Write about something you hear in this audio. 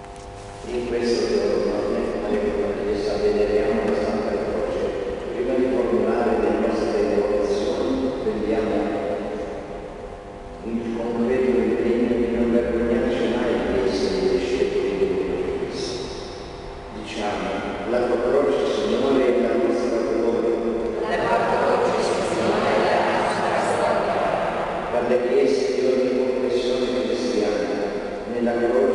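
A man speaks in a large echoing hall.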